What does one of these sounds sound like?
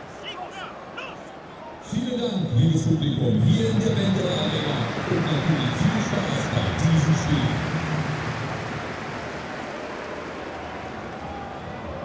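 A large crowd roars and chants in a big open stadium.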